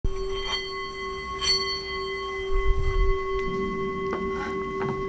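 A singing bowl rings with a steady, shimmering hum.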